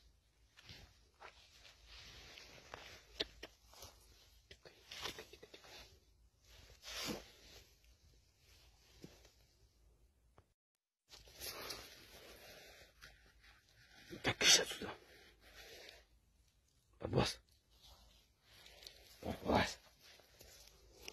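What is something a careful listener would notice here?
A badger snuffles and sniffs close by.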